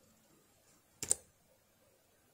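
Laptop keyboard keys click.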